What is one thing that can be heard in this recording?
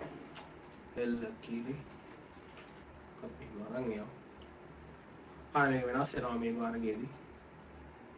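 A man talks calmly into a nearby microphone, in short bursts.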